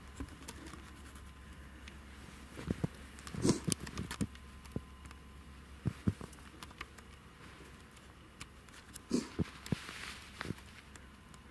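Boots crunch and squeak through deep snow with each step.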